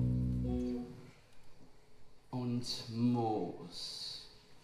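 Young men and women sing loudly.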